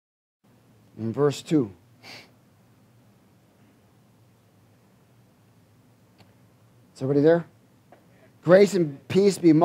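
A middle-aged man reads aloud slowly into a microphone, with pauses.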